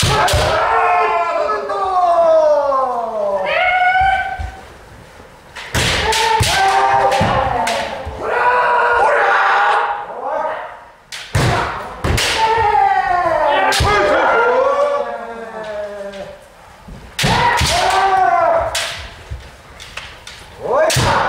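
Bamboo swords clack sharply against armour.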